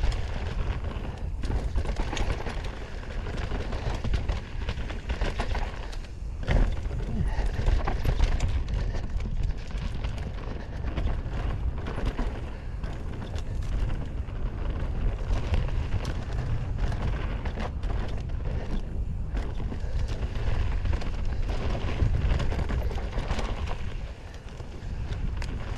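Bicycle tyres roll and crunch over a dirt trail.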